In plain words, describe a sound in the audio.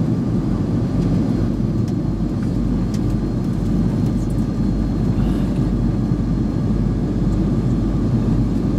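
Jet engines roar steadily inside an airplane cabin in flight.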